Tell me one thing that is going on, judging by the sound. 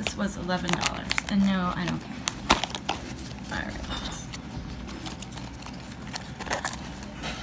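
A cardboard box rattles and scrapes as hands handle it.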